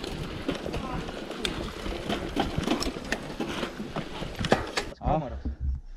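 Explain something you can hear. Mountain bike tyres rattle and crunch over a rough dirt trail.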